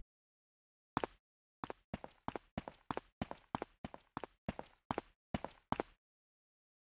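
Footsteps tap on a stone floor.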